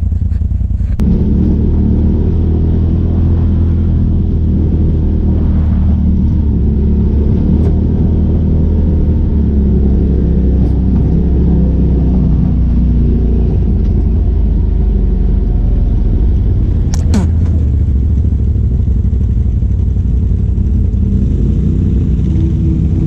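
Tyres crunch over a rough gravel track.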